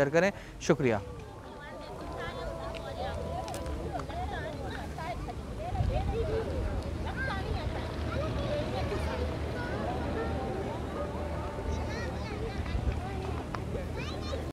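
A crowd of women and children chatter and murmur outdoors.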